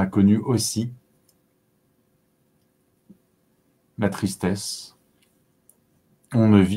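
A man speaks calmly, close to a microphone, with pauses between phrases.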